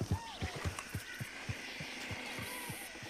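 A horse's hooves clop on soft ground.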